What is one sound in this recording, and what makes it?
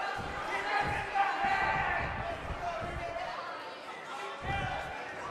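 A large crowd cheers loudly in an echoing arena.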